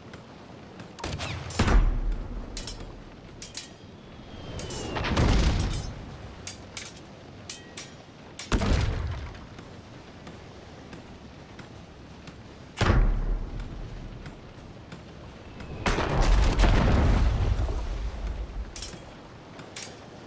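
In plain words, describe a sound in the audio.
Cannons fire in loud, deep booms that rumble away.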